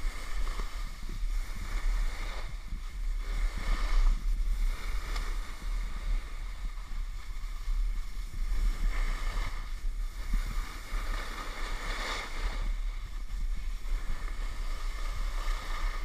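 A snowboard scrapes and hisses over snow close by.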